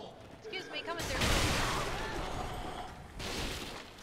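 A rushing whoosh of game effects swells and fades.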